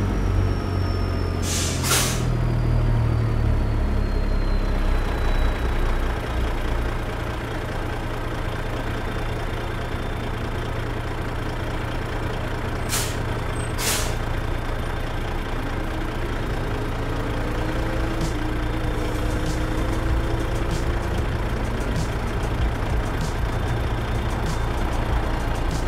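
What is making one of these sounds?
A truck engine rumbles low and steady.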